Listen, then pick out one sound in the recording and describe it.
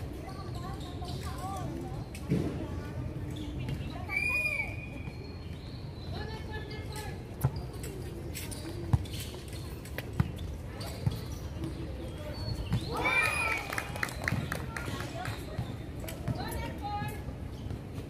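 Women call out to each other outdoors.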